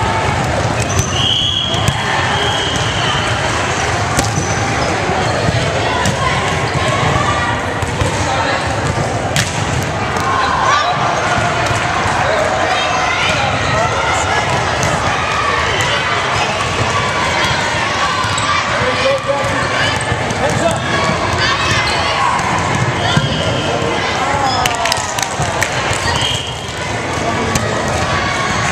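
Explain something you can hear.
Girls shout and call out to each other in a large echoing gym.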